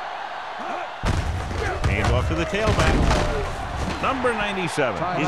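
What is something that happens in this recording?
Football players crash together in a tackle with heavy thuds.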